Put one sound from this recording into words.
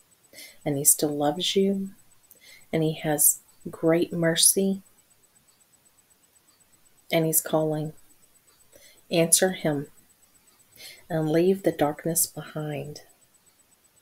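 A woman speaks close to a microphone with animation, in short bursts.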